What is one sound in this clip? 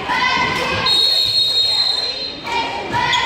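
A referee's whistle blows a sharp blast.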